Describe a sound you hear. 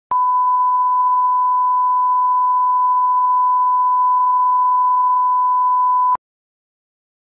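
A steady, high test tone beeps without a break.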